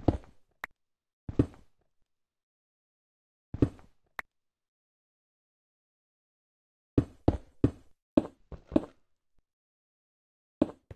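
Blocks thud and crunch as they are placed and broken in a game.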